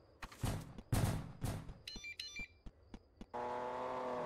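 Footsteps thud in a quick run.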